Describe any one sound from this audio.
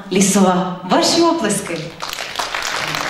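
A young girl speaks loudly through a microphone in a large hall.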